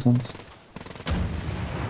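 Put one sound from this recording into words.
Gunfire bursts loudly.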